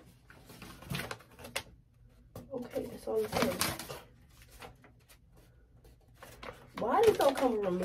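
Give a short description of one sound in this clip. A paper leaflet rustles in a young woman's hands.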